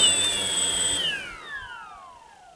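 A drone's motors wind down, their whine falling in pitch.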